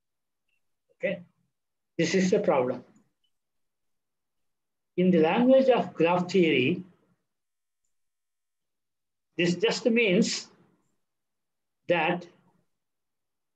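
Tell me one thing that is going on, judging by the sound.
An elderly man speaks calmly through an online call, in short phrases with pauses.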